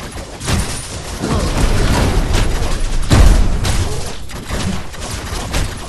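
Impact blasts boom with deep rumbling bursts.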